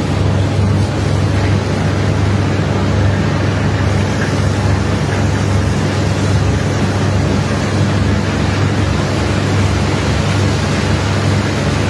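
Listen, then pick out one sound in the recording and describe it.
A high-pressure water jet hisses and sprays steadily against a heap of loose coal.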